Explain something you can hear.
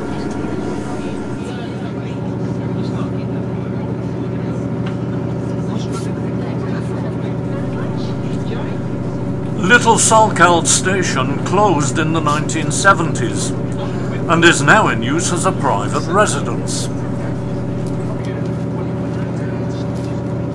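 A train engine drones steadily.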